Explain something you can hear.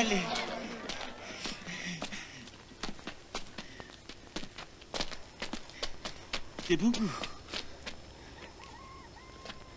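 Footsteps crunch on dry leaves.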